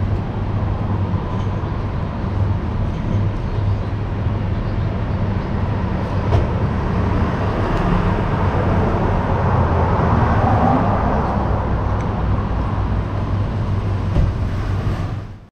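A cat crunches on dry food.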